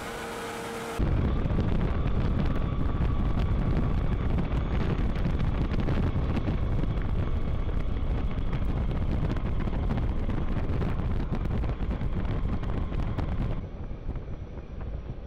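A heavy vehicle engine rumbles while driving along a road.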